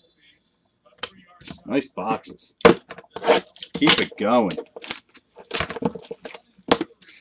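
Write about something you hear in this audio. Cardboard packaging rustles and tears.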